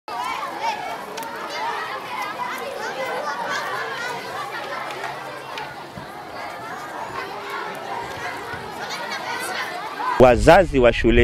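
Many children chatter and shout outdoors.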